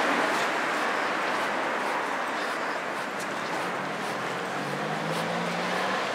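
Footsteps tap steadily on a pavement close by.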